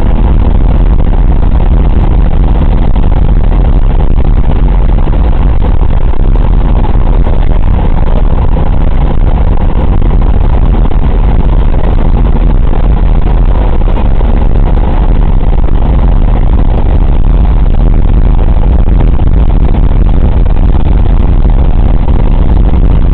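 Radial piston engines of a four-engine bomber drone loudly while cruising, heard from inside the fuselage.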